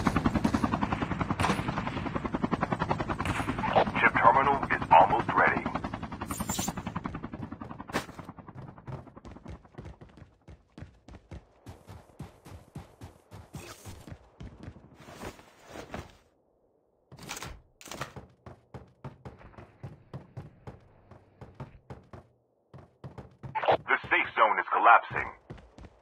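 Quick footsteps thud on a hard floor.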